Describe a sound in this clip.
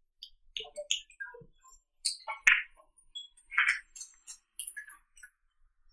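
Billiard balls click against each other.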